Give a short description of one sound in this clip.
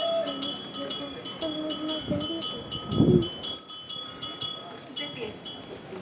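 A crowd of children and adults murmurs outdoors.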